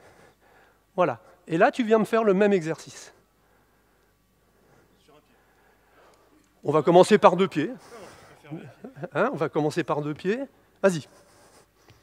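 A man speaks with animation into a microphone, in a large echoing hall.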